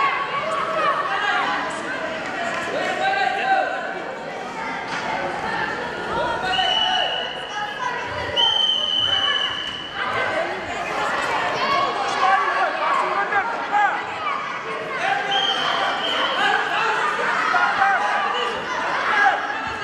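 Young spectators shout and cheer loudly in an echoing hall.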